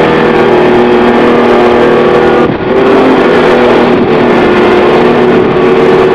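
An outboard motor drones loudly and steadily.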